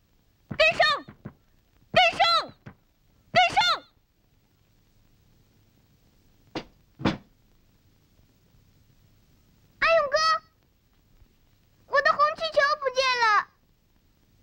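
A young boy calls out loudly.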